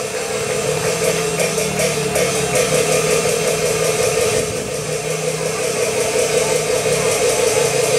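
Loud opera music with singing plays through loudspeakers.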